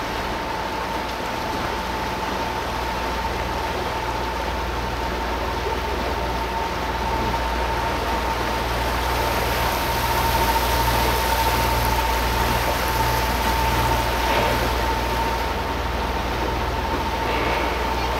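Wind rushes outdoors.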